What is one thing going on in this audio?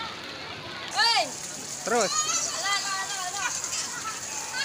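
A young boy speaks excitedly close by.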